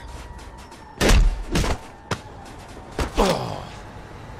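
Heavy punches thud against a body.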